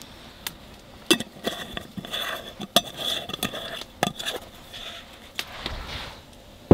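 Metal cans clink and scrape as a lid is twisted.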